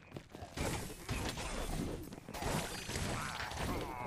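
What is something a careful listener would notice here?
A magical blast bursts loudly.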